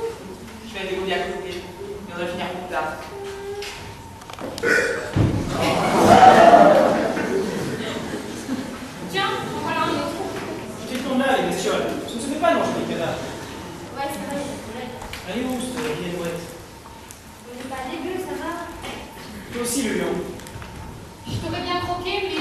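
A young woman speaks theatrically in an echoing hall.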